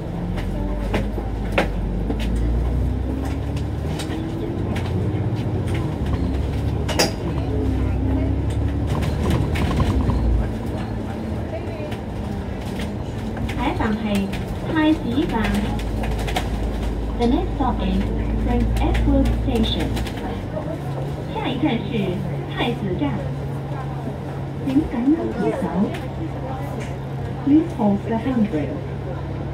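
Street traffic hums outside.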